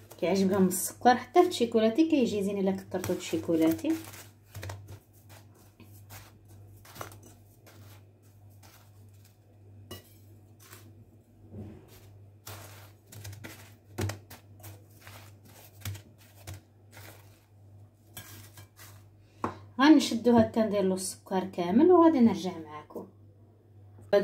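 Sugar rustles softly as a doughnut is rolled in it.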